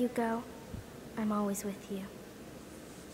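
A young woman speaks softly and warmly.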